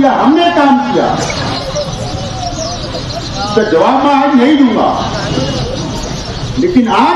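A crowd of men cheer and chant loudly nearby.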